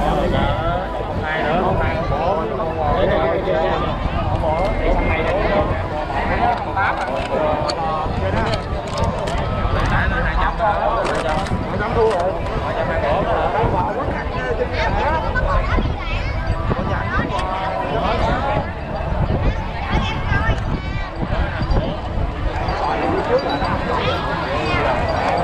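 Wind buffets across an open field.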